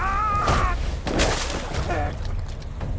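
A body splashes into water.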